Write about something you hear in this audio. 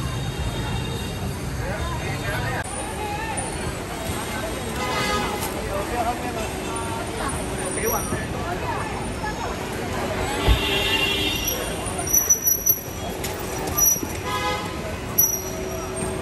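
A crowd of people murmurs nearby.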